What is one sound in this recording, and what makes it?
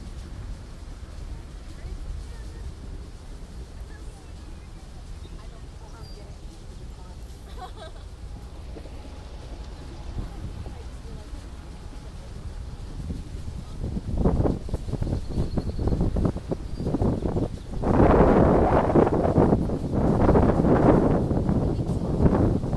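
A large ship's engine rumbles low and steadily nearby.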